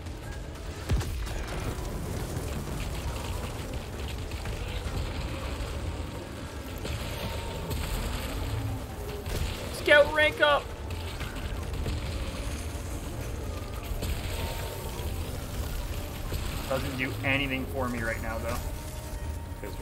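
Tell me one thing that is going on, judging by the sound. Energy weapons fire and crackle in rapid bursts.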